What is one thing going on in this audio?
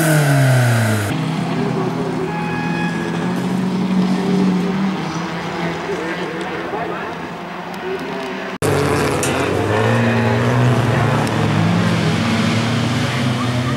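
Tyres skid and spray gravel on a dirt track.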